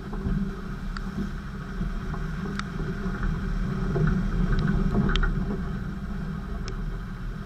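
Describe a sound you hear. Mud and small stones spatter against the vehicle's body.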